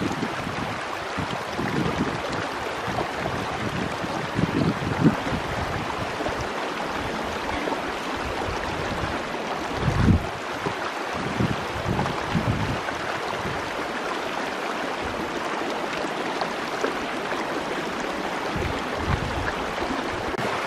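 A stream rushes and splashes steadily nearby.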